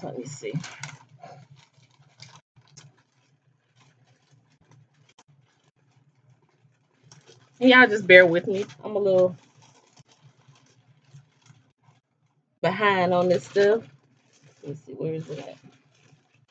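A woman talks close to a microphone, in short bursts with pauses.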